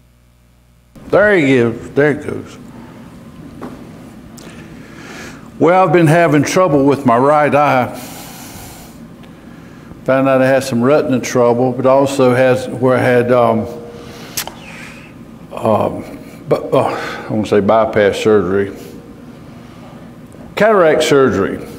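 A man preaches through a microphone, with pauses, in a large echoing hall.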